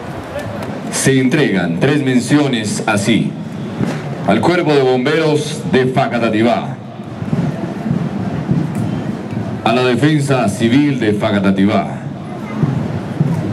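A man speaks formally through a loudspeaker outdoors.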